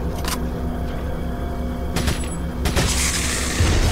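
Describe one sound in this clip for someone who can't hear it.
A handgun fires several shots.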